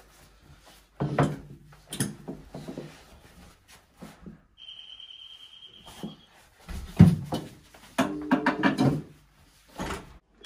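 A young man talks loudly through a door.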